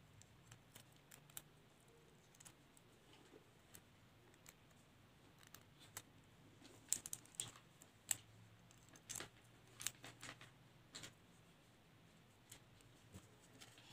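Paper crinkles and rustles under fingers.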